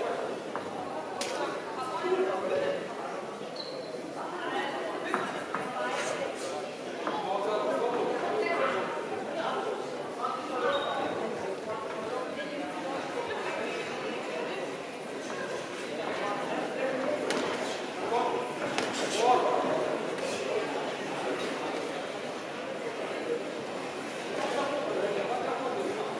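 A crowd chatters and cheers throughout a large echoing hall.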